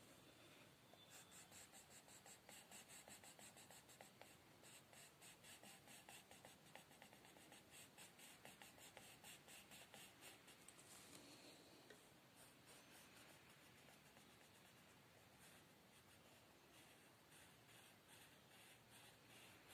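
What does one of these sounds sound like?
A coloured pencil scratches rapidly back and forth on paper.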